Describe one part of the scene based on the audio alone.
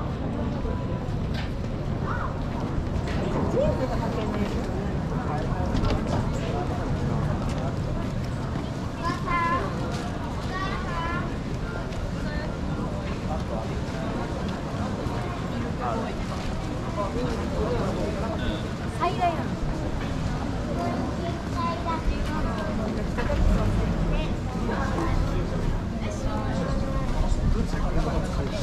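Footsteps shuffle on pavement outdoors.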